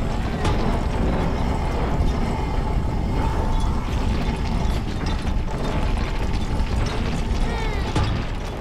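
A heavy metal cart rumbles and grinds as it slides along a wooden track.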